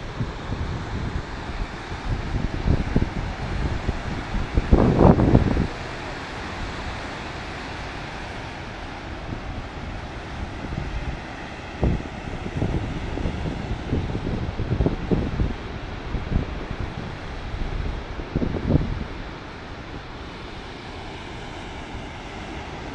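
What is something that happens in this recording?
Ocean waves crash and roar steadily onto the shore.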